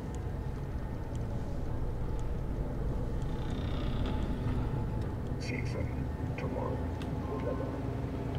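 A low mechanical hum drones steadily throughout.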